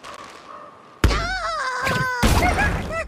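A bird thuds into wooden blocks.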